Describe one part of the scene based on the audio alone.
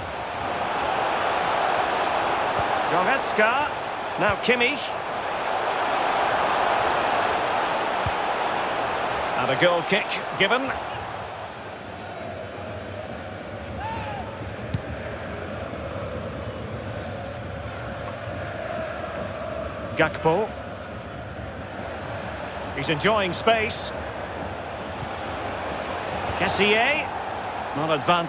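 A stadium crowd roars and murmurs.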